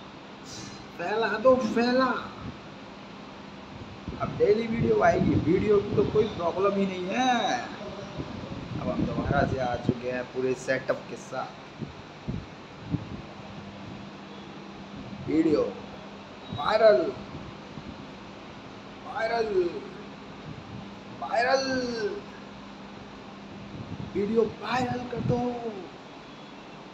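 A young man talks close up, calmly and in short bursts.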